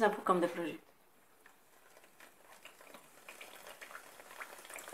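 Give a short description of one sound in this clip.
Hot oil sizzles and crackles as dough pieces fry.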